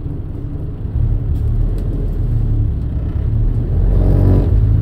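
A bus engine revs up louder.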